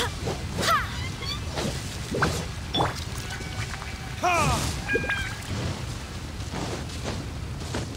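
Sword swings whoosh and slash repeatedly.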